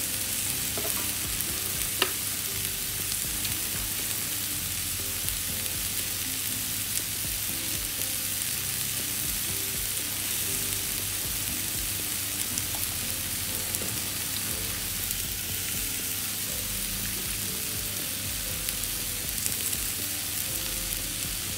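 Meat sizzles and crackles steadily on a hot grill.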